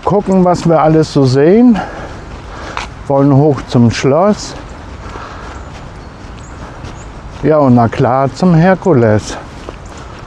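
A middle-aged man speaks calmly and close up, in bursts with pauses, outdoors.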